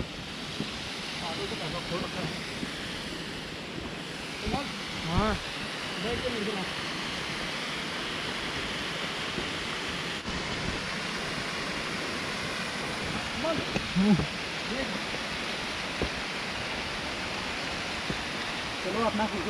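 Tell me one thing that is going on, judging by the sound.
A man talks loudly outdoors, a few steps away.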